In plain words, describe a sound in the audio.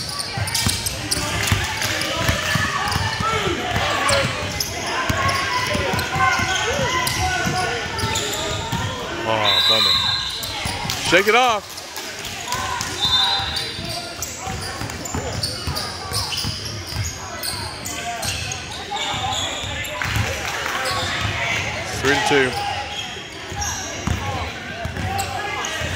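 Young players call out to each other in a large echoing hall.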